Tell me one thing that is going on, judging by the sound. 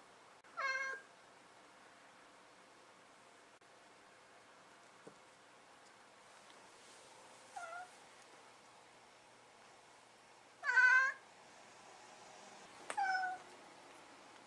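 A cat meows several times, close by.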